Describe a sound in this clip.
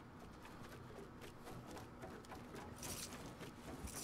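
Wooden building pieces clatter into place.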